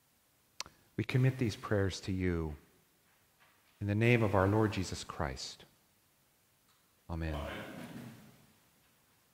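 A man speaks slowly and clearly through a microphone in a large echoing hall.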